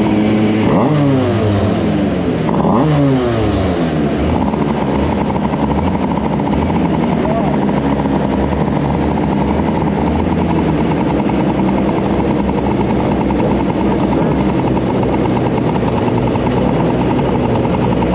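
A kart engine idles loudly close by with a rattling buzz.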